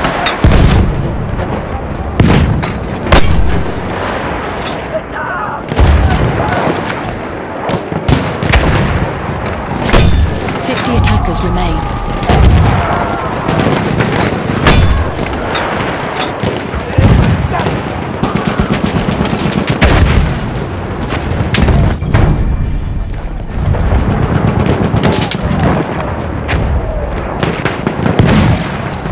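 Explosions boom and rumble nearby.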